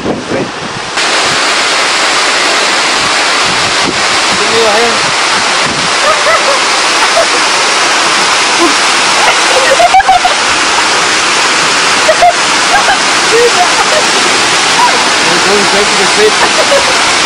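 A waterfall roars loudly nearby.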